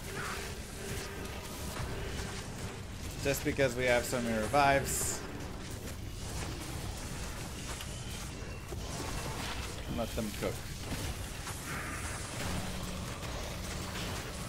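Game spells crackle and blast.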